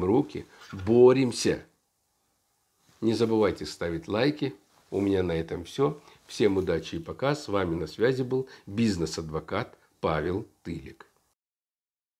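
A middle-aged man speaks calmly and earnestly close to the microphone.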